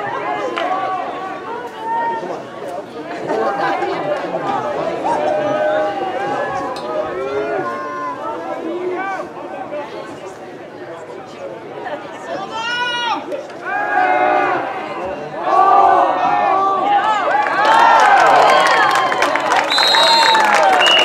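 Many young voices shout and cheer loudly outdoors, swelling louder near the end.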